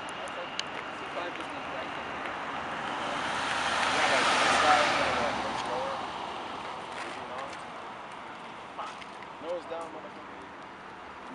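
A propeller plane drones overhead, swelling loud as it passes close and then fading into the distance.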